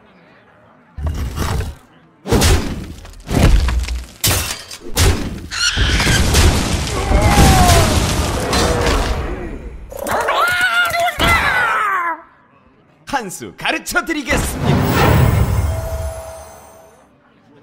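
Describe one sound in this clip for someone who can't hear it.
Game sound effects crash and clang as cards strike each other.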